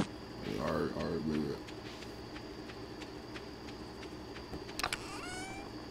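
Quick, light footsteps patter on dirt.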